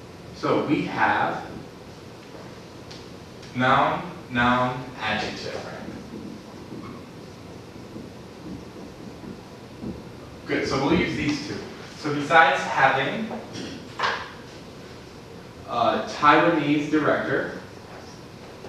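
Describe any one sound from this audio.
A man speaks in a calm, teaching voice.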